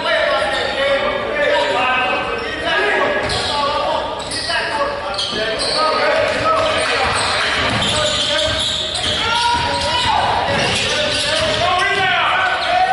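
Spectators and coaches talk and call out in a large echoing gym.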